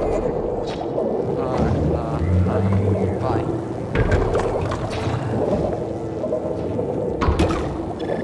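Cartoonish creature sounds chirp and burble over a watery backdrop.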